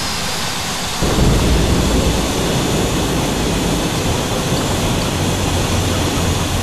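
Wheels touch down and rumble along a runway.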